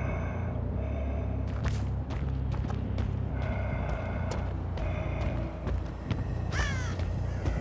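Heavy footsteps crunch through grass and over stone.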